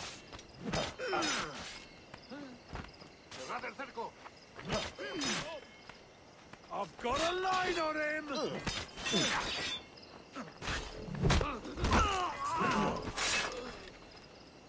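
Blows thud against bodies.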